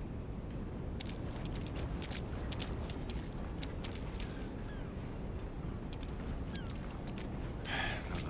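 A chain-link fence rattles as someone climbs it.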